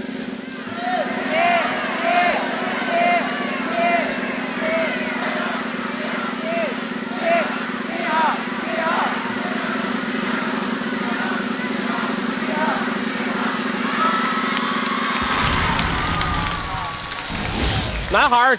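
A large crowd cheers and shouts in a big hall.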